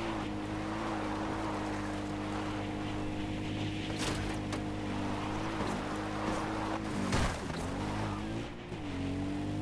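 Tyres crunch over a gravel track.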